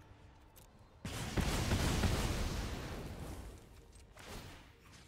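A fiery magical blast roars and slowly fades.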